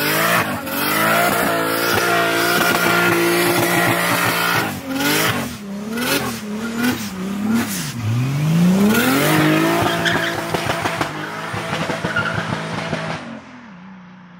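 Tyres screech as they spin on the road.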